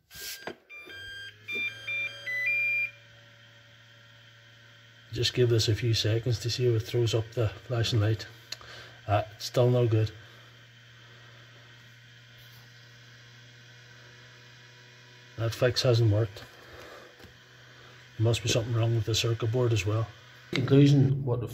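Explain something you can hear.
A charger fan hums steadily.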